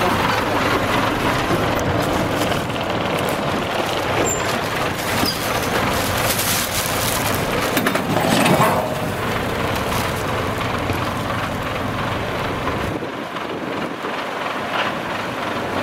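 Truck tyres grind slowly over loose dirt.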